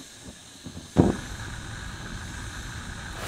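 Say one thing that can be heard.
A candle wick flares alight with a soft whoosh.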